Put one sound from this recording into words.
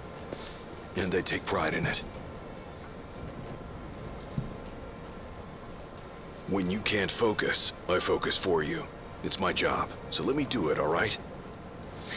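A man speaks firmly and calmly, close by.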